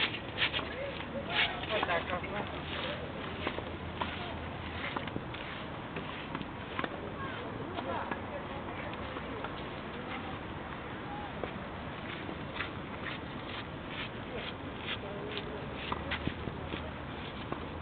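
Several men talk at a distance outdoors.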